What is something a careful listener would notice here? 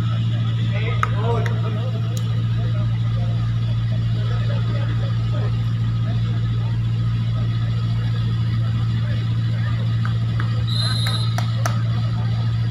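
A ball is struck hard with a sharp slap.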